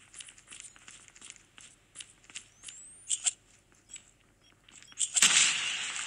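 Quick footsteps tap on a hard floor.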